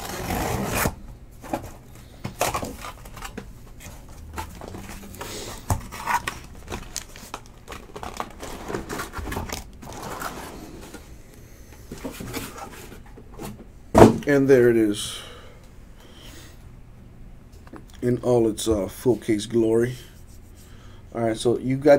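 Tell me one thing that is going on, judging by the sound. Cardboard boxes knock and rustle as they are handled.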